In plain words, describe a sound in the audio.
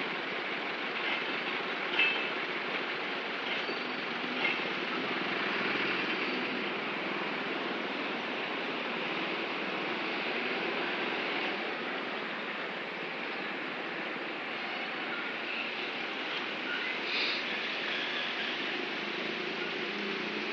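A train rumbles steadily past on the tracks close by.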